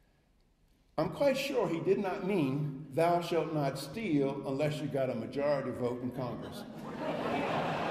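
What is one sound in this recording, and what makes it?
An older man speaks with animation through a microphone in a large hall.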